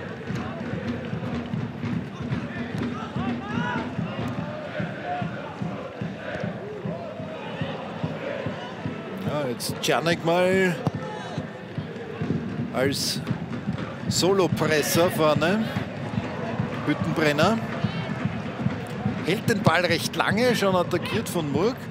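A large stadium crowd murmurs and chants in the open air.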